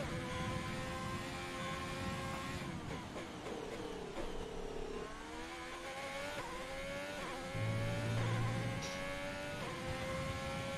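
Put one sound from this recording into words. A racing car engine screams at high revs, drops in pitch as the car brakes and downshifts, then climbs again as it speeds up.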